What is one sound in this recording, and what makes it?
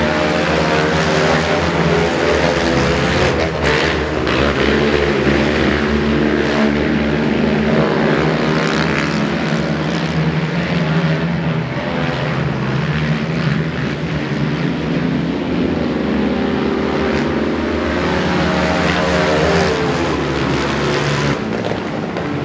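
Several quad bike engines roar and whine as they race around a track.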